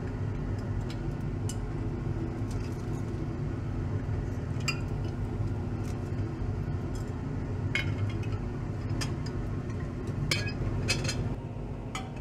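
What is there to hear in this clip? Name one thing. Glassware clinks and taps against glass.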